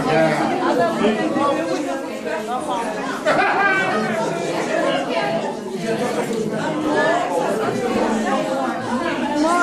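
A crowd of men and women talks and chatters close by in a room.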